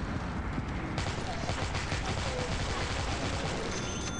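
A submachine gun fires a rapid rattling burst.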